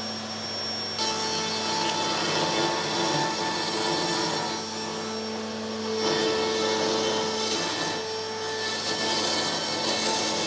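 A router bit cuts into wood with a rough, grinding whine.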